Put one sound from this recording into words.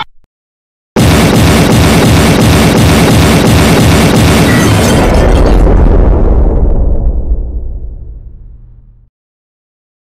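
A huge explosion booms loudly and slowly fades away.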